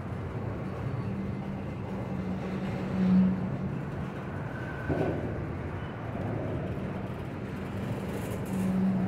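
Tank cars of a freight train roll slowly on steel rails, wheels rumbling and squeaking.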